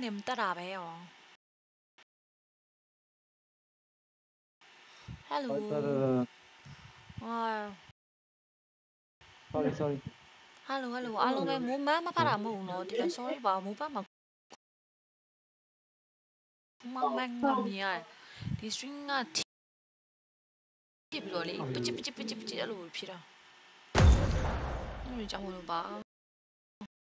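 A young woman talks with animation into a close microphone, in bursts with pauses.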